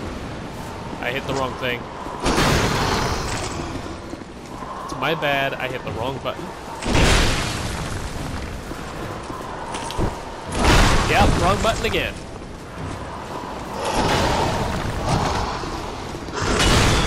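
Metal weapons clash and clang loudly, again and again.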